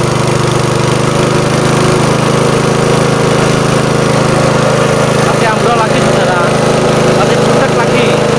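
A small engine runs steadily close by.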